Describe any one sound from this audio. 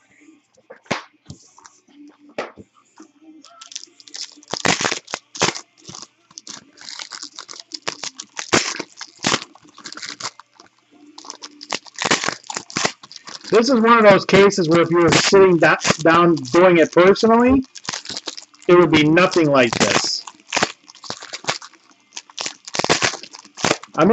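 Foil packs crinkle and rustle as they are torn open.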